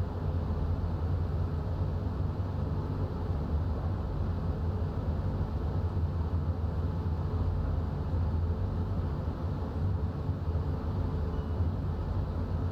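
A train engine rumbles steadily as the train rolls along the tracks.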